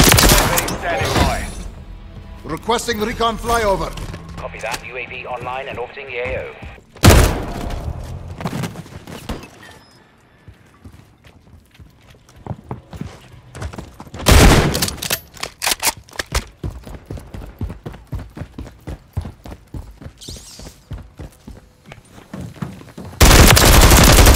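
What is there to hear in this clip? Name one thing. A rifle fires bursts of loud, sharp gunshots.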